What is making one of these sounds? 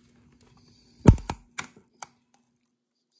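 Metal pliers click against a small component.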